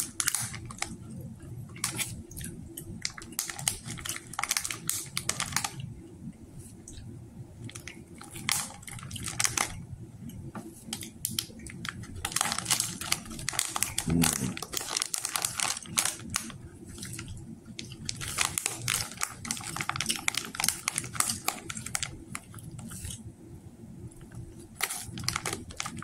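A plastic wrapper crinkles and rustles in hands.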